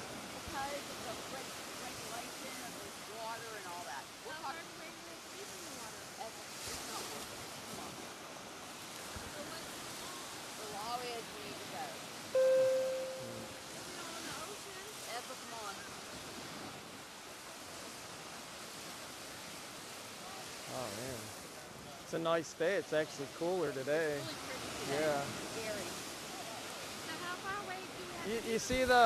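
Waves wash onto the shore in the distance.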